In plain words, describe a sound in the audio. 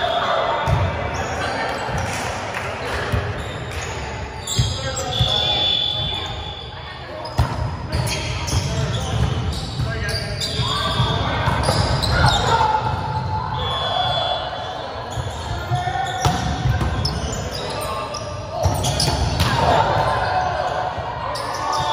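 Young men and women chatter and call out in a large echoing hall.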